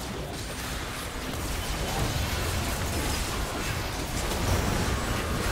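Game spell blasts and hits crackle in a busy fight.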